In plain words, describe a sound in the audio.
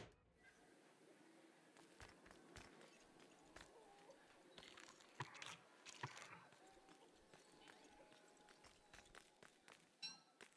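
Light footsteps patter on a hard floor.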